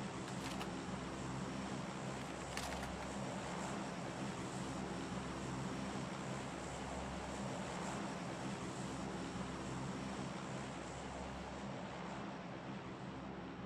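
Footsteps rustle through tall grass.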